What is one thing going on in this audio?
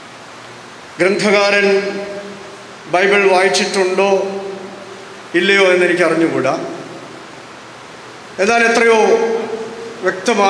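A middle-aged man speaks slowly and solemnly into a microphone, with pauses between phrases.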